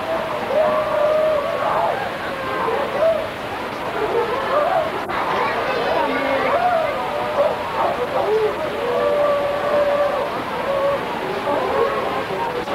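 A large crowd chatters and calls out in a busy murmur outdoors.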